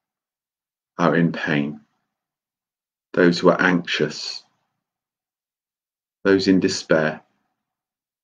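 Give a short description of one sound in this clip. A middle-aged man speaks calmly in short phrases, close to a microphone.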